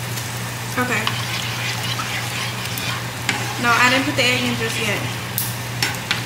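A spoon stirs and scrapes in a pan.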